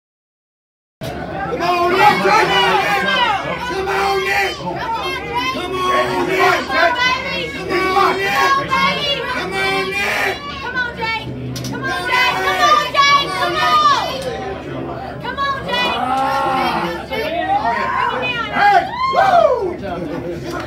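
A crowd of men and women shouts and cheers loudly in a noisy room.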